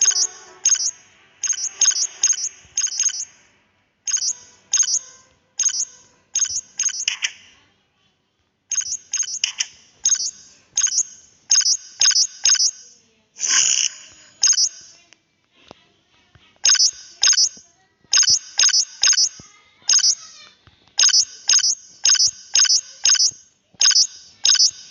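Short, sharp menu clicks tick again and again as items are picked in a game.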